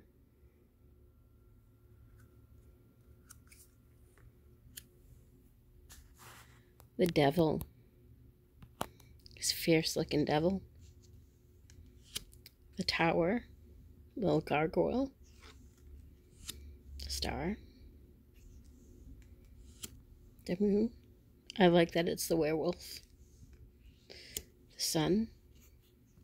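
Cards slide and tap softly against each other.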